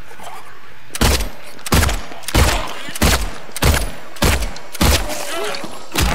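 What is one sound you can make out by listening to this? A pistol fires shot after shot in quick succession.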